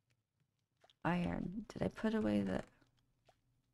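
A young woman speaks briefly and with animation into a microphone.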